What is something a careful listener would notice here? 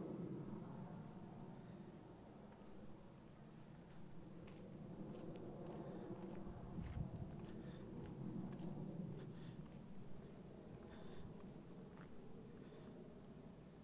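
Wind rustles through low shrubs and palm fronds outdoors.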